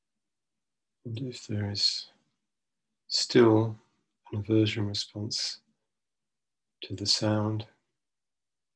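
A middle-aged man speaks slowly and calmly into a microphone in short phrases, with pauses between them, as if on an online call.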